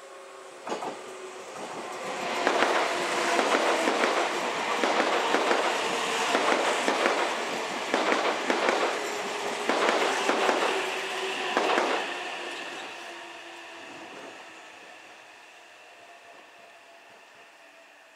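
A train's motor hums and whines as it pulls away.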